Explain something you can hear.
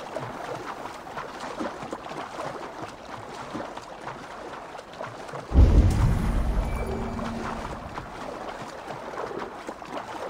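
A swimmer splashes steadily through water.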